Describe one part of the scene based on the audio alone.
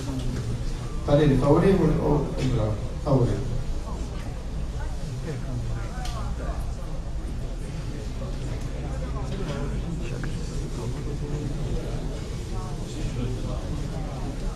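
A man speaks with animation into a microphone in a meeting hall.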